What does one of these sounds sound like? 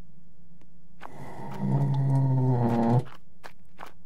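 A heavy metal door creaks slowly open.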